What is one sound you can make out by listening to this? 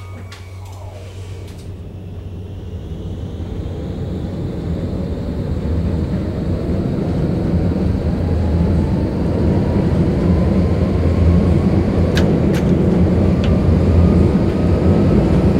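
A tram's electric motor hums low and rises steadily in pitch as the tram speeds up.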